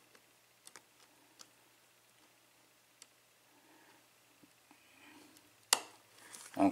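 Metal picks tick and scrape inside a pin-tumbler lock cylinder.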